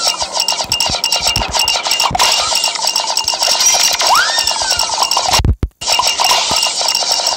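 Bouncy electronic game music plays with a steady beat.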